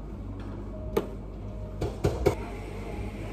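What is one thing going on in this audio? Glasses clink on a counter.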